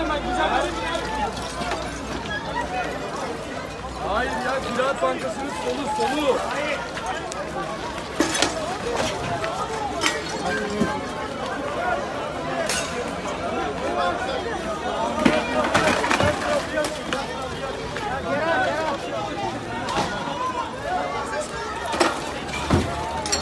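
A crowd of men and women shout and talk anxiously outdoors.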